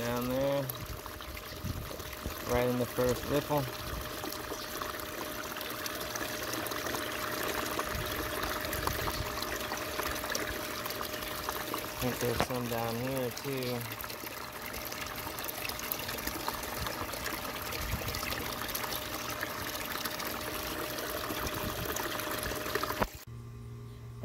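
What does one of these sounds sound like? Water churns and splashes steadily close by.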